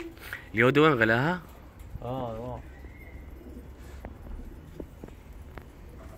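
A flock of pigeons flaps its wings overhead.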